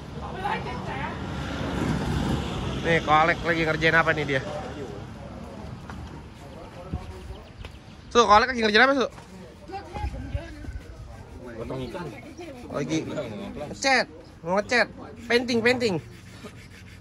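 Men talk casually nearby, outdoors.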